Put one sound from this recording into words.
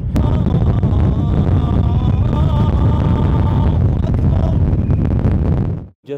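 A man chants in a long, drawn-out, singing voice close by, outdoors.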